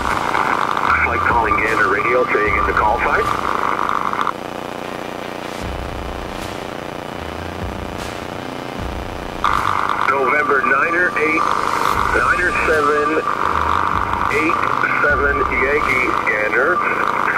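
A man speaks calmly over a crackly radio.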